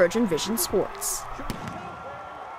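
A crowd cheers in a large open stadium.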